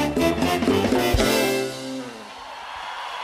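A band plays a final chord that rings out.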